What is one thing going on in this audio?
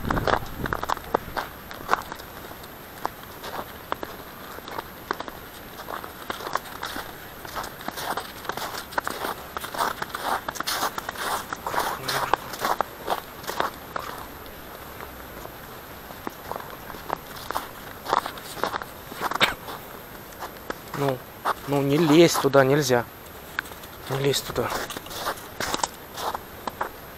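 Footsteps crunch steadily on snow outdoors.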